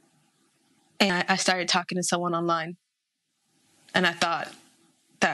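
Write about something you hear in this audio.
A young woman speaks calmly and close by, with short pauses.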